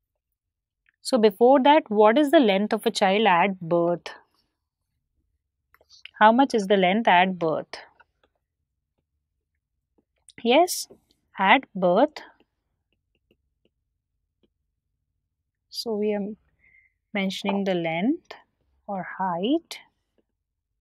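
A woman speaks calmly and clearly into a close microphone, in short bursts with pauses.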